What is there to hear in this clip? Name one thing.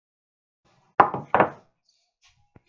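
Wooden boards knock and clatter against each other.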